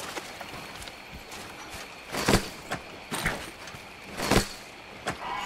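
A weapon swishes sharply through the air.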